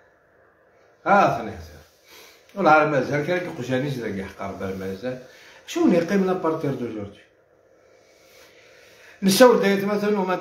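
A middle-aged man speaks forcefully and with emotion, close to a phone microphone.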